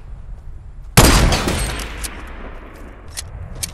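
A sniper rifle fires a single shot.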